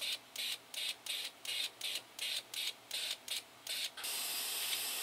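A fuel injector clicks in quick, even pulses.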